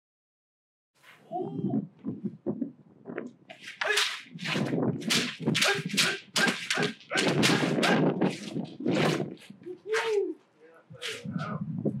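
Young men shout sharp, loud cries as they spar outdoors.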